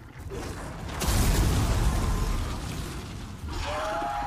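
Flames burst and roar.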